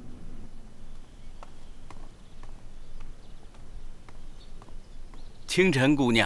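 Footsteps tap lightly on a wooden floor.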